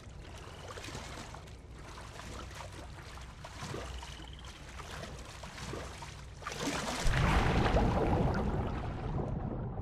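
Water sloshes and splashes as someone wades and swims.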